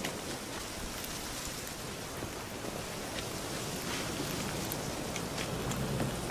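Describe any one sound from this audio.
A fire crackles and hisses close by.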